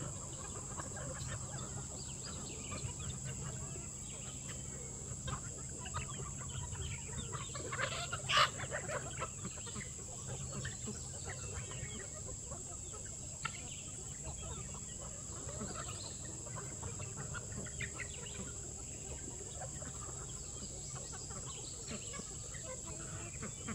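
Chickens cluck and chatter outdoors.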